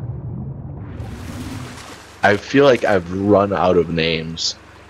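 Water splashes and laps gently.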